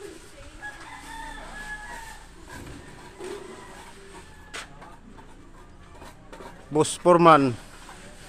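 A trowel scrapes wet cement on a wall.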